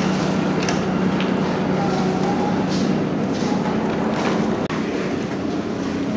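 Water rushes and splashes beneath a moving float.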